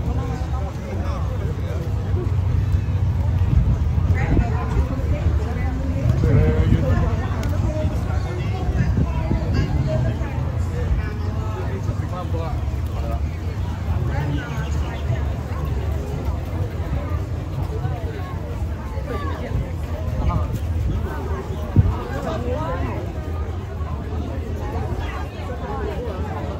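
A crowd of men and women chatters all around outdoors.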